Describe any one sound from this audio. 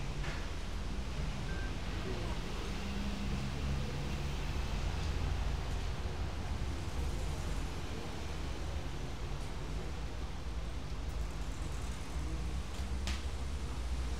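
Music plays through loudspeakers.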